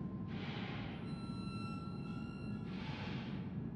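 A short electronic chime sounds as an item is picked up.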